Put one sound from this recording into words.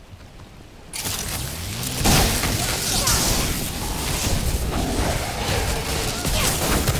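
Magic blasts crackle and boom loudly in a fight.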